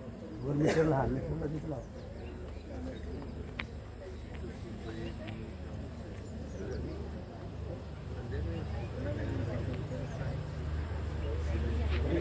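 A crowd of women and men murmurs and chatters outdoors.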